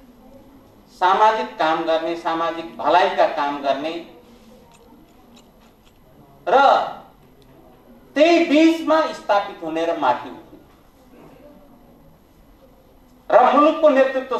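An elderly man speaks forcefully into a microphone, heard over a loudspeaker, in bursts with pauses.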